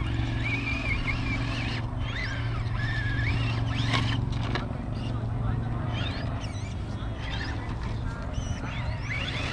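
An electric motor whines and rises and falls in pitch.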